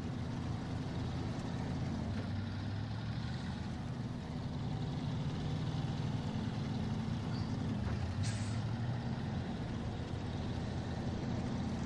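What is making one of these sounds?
A heavy truck engine rumbles steadily as the truck drives slowly over rough ground.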